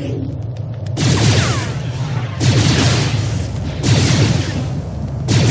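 Blaster shots and lightsaber swings crackle in a battle.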